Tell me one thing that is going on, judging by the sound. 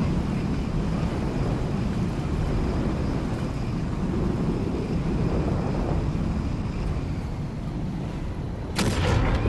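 Jet engines roar steadily as a small aircraft hovers and descends.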